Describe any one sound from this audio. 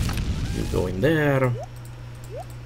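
A wooden chest creaks open with a short game sound.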